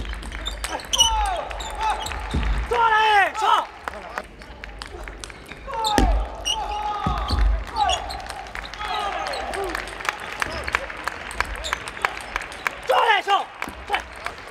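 Sports shoes squeak sharply on a hard floor.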